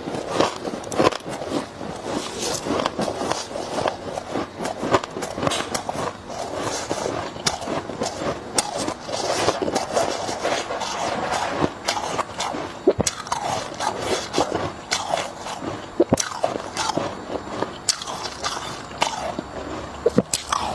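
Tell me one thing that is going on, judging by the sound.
Ice clinks and rattles as hands stir it.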